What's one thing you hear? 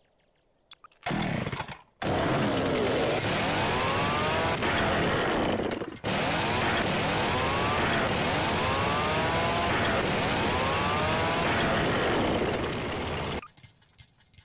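A chainsaw starts and roars loudly.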